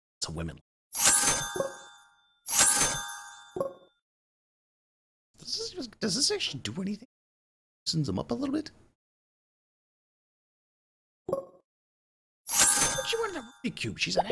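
A short bright chime rings out several times.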